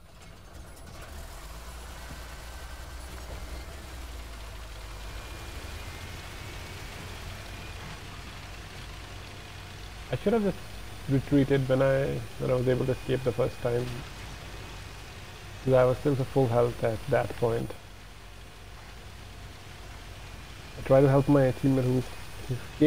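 A tank engine rumbles low and steady as the tank drives.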